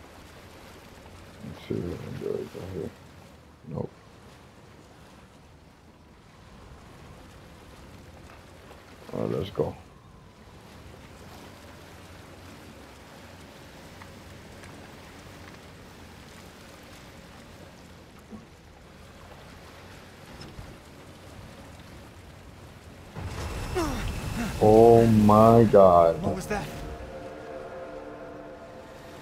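Water laps gently against a small rowing boat.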